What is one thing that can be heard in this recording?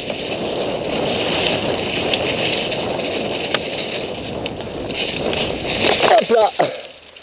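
Bike tyres roll and rattle quickly over dry leaves and rough ground.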